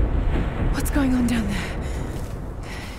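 A young woman asks a question with concern.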